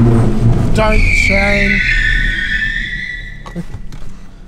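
Tyres squeal sharply on a smooth floor.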